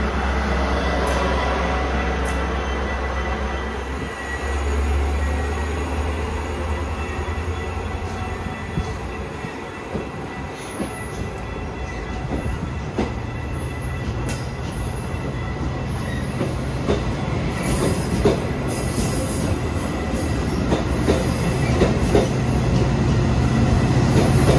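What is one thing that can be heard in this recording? A diesel train engine idles with a low, steady rumble.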